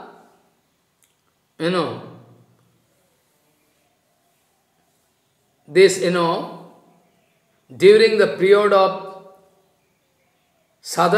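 An elderly man speaks calmly and slowly into a microphone, with long pauses.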